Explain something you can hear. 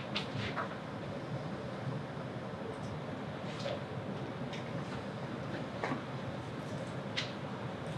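Keys click softly on a laptop.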